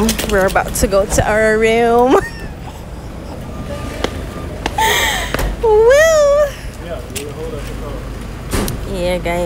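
Women talk and exclaim with animation nearby.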